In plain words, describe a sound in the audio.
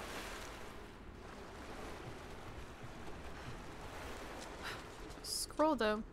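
A swimmer paddles through water with gentle splashes.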